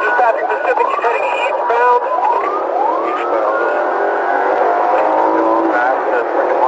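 Police sirens wail, rising and falling.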